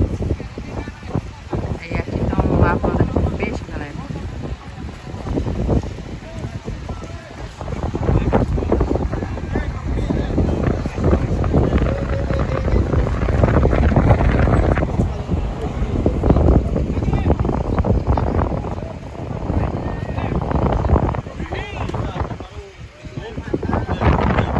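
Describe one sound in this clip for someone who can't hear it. Wind rumbles across an open outdoor shore.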